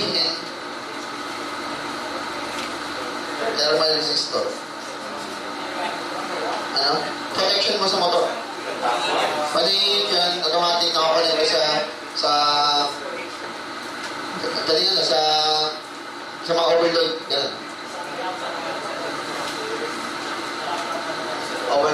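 A man speaks into a microphone, lecturing in bursts, heard through a loudspeaker in an echoing room.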